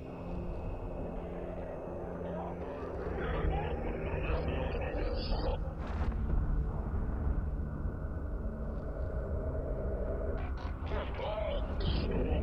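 Laser beams fire with buzzing zaps.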